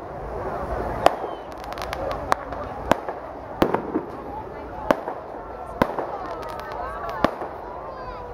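Fireworks pop and crackle sharply overhead.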